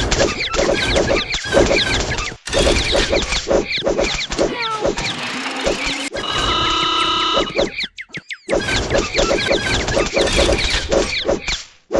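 A cartoon pie splats against a target.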